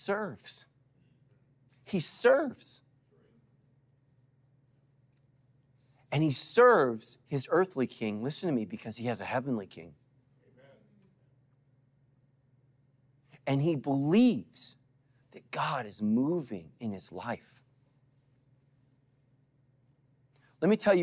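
A middle-aged man speaks with animation into a microphone, with long pauses.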